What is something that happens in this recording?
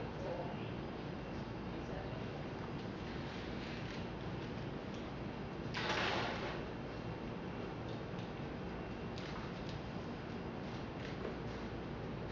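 A dog's claws patter on a hard floor.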